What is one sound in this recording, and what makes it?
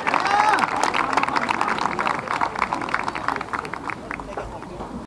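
A crowd applauds outdoors, slowly fading.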